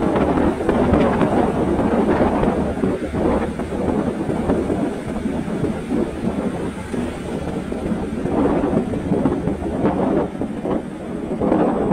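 Wind rushes and buffets past the rider.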